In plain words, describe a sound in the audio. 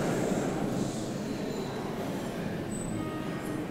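An acoustic guitar plays in a large echoing hall.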